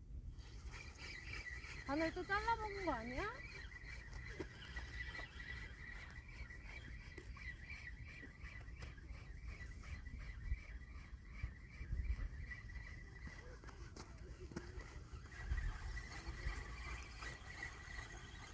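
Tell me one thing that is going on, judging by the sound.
A fishing reel ticks rapidly as line is wound in.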